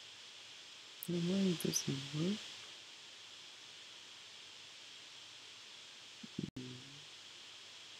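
A man speaks calmly and briefly into a close microphone.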